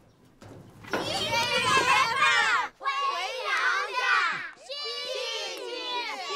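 Children chant together loudly.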